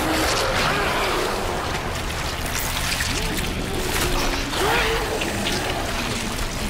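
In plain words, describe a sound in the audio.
A creature snarls and growls close by.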